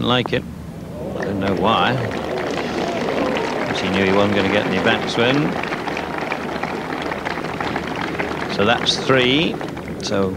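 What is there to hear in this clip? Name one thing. A large crowd applauds and cheers outdoors.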